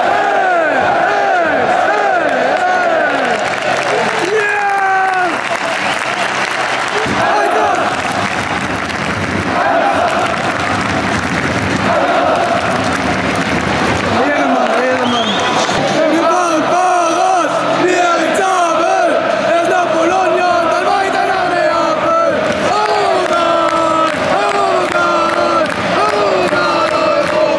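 Fans clap their hands rhythmically nearby.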